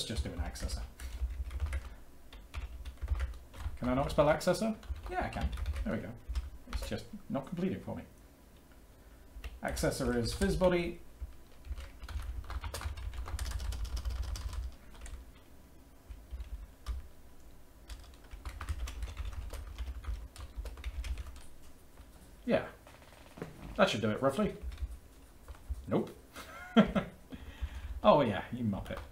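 Computer keys clatter as a man types.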